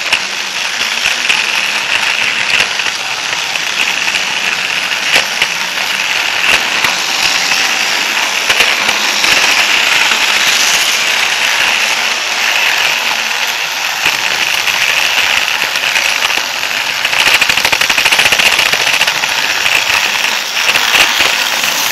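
Plastic toy train wheels rattle and click over track joints.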